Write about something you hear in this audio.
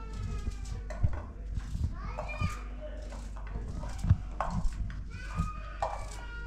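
Pieces of onion drop with soft knocks into a metal pan.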